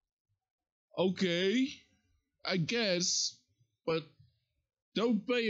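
A young man speaks with animation close to a microphone, in short bursts.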